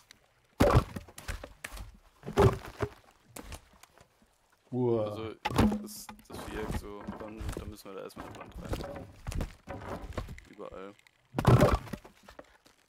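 Heavy wooden logs thud as they are set down.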